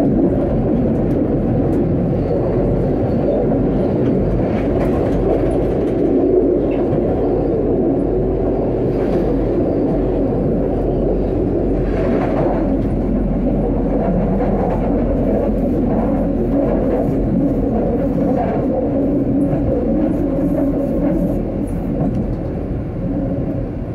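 Tram wheels clatter and squeal on the tracks.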